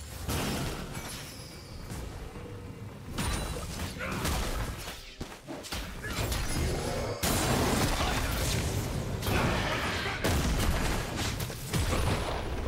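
Game spell effects and blows crackle and burst in quick succession.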